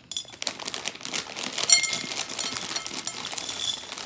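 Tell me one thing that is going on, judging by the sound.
Dry pasta rattles as it pours out of a bag.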